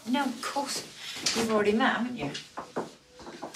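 A woman speaks briskly nearby.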